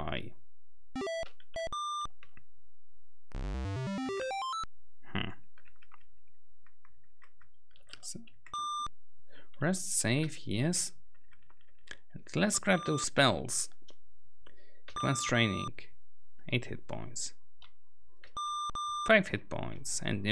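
Short electronic beeps chirp from an old computer game.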